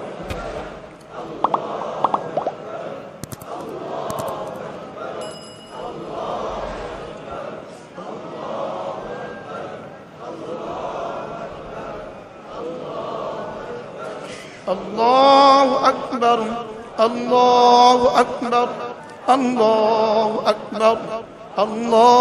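A middle-aged man chants melodiously into a microphone, heard over a loudspeaker with some echo.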